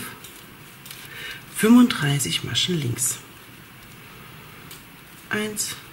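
Knitting needles click softly against each other.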